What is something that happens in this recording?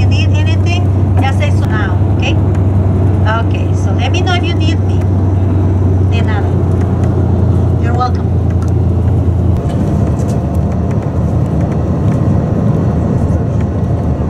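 A vehicle's engine drones steadily with a low road rumble.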